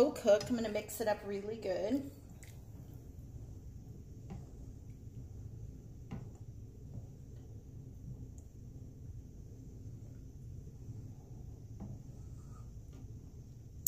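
A spatula scrapes in a frying pan.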